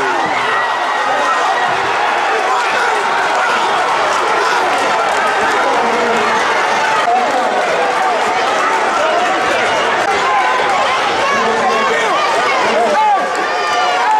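A crowd shouts and cheers in an echoing gym.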